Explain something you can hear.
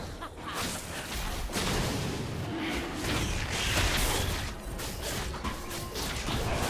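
Magic spells crackle and whoosh in a noisy fantasy battle.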